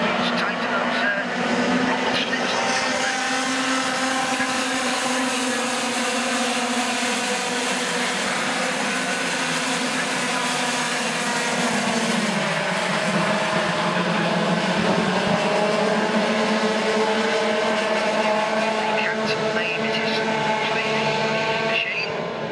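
Kart engines buzz and whine loudly as they race past on a track outdoors.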